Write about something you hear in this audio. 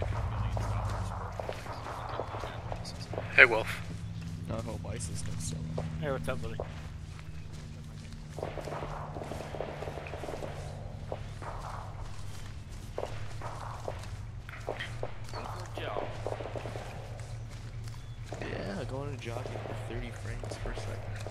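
Footsteps run quickly through dry grass.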